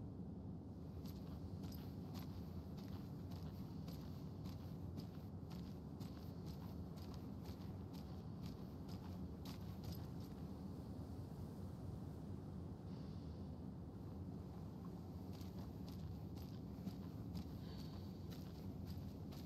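Footsteps walk along a paved road.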